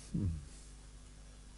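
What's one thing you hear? A man briefly murmurs close to a microphone.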